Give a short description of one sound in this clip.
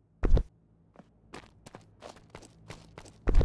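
Quick footsteps patter over grass.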